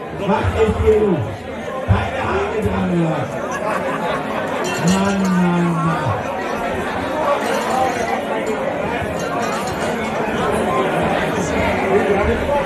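A large crowd chatters and cheers in an echoing hall.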